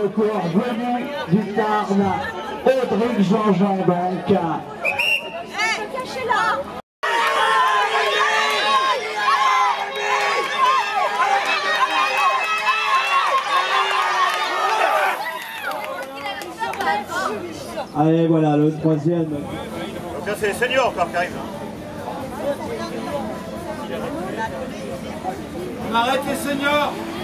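A crowd of spectators cheers and calls out outdoors.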